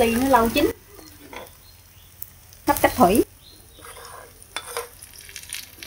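A metal spatula scrapes and stirs food in a pan.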